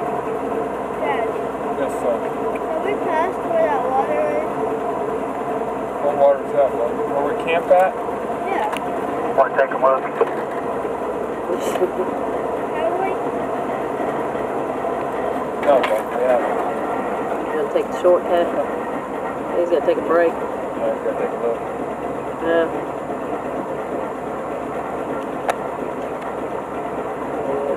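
An off-road vehicle's engine rumbles steadily at low speed.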